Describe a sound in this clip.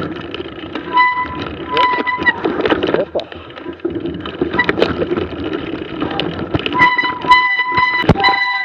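Bicycle brakes squeal in short bursts.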